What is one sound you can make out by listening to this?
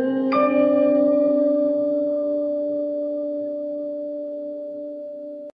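An orchestra holds a long final chord in a large hall, slowly fading.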